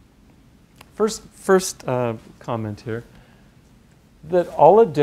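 An older man speaks clearly into a microphone, pausing between phrases.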